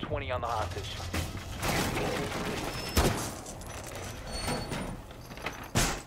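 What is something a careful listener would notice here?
A hammer smashes through a wooden barricade.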